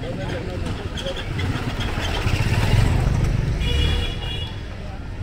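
A motor scooter engine hums past close by.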